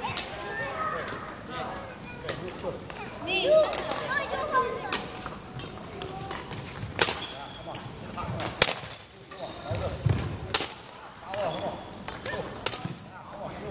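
Badminton rackets strike a shuttlecock with sharp pops.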